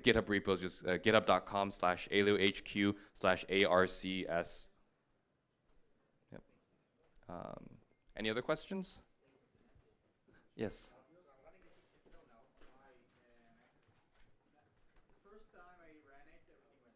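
A man speaks calmly into a microphone, heard through loudspeakers in a large hall.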